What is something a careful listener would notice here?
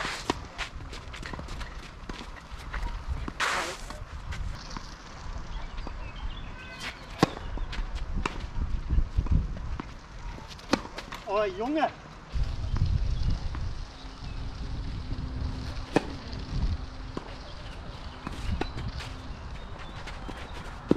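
Tennis balls are struck with rackets in a rally.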